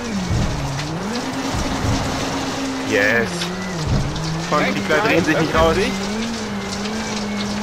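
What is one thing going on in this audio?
A rally car engine roars and revs up and down through gear changes.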